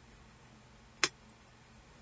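A bone folder taps sharply against a table.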